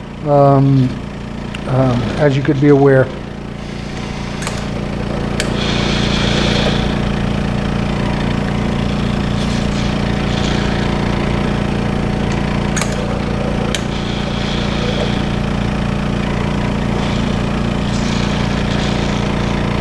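A machine whirs with a steady, rapid pulsing hum.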